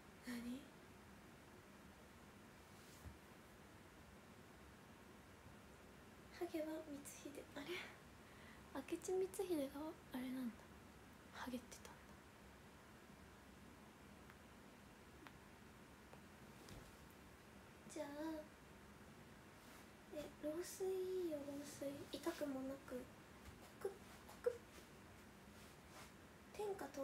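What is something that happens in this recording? A young woman talks casually and close up into a microphone, with pauses.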